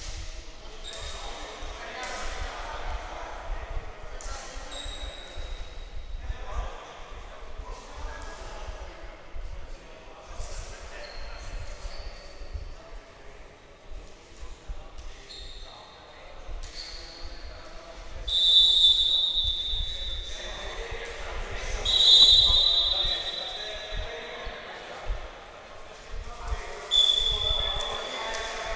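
Sneakers squeak sharply on a hardwood floor, echoing in a large hall.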